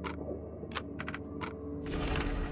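Soft clicks tick several times in quick succession.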